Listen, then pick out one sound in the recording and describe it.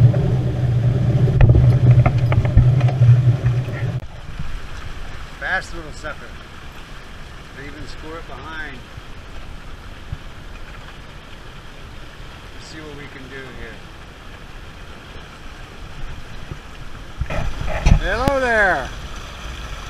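Water splashes and rushes past a sailboat's hull.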